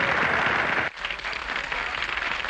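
A big band plays.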